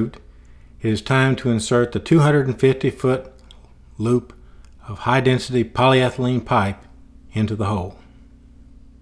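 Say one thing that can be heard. A man talks nearby in a relaxed voice.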